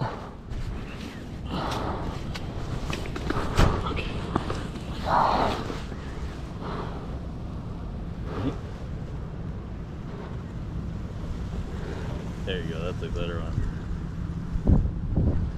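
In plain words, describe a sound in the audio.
Jacket sleeves rustle close by as a fish is handled.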